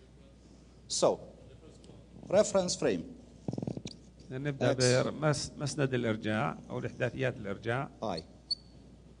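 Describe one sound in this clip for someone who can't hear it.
A middle-aged man speaks calmly and clearly.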